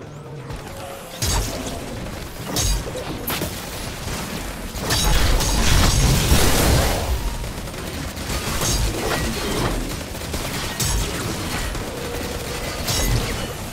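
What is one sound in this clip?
Gunfire and explosions crack and boom in a game battle.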